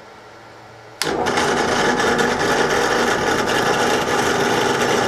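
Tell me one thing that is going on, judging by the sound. A drill press motor whirs steadily.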